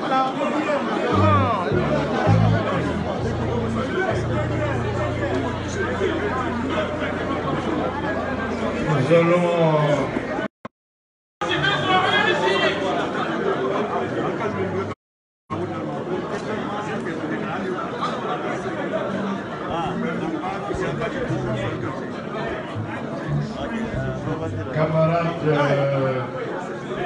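A crowd of men and women chatters loudly all around in a large echoing hall.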